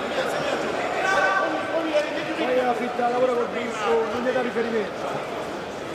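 Men in the crowd shout encouragement loudly.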